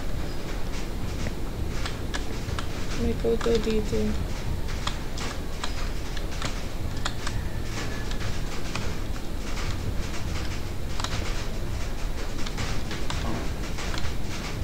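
A young woman speaks softly into a microphone.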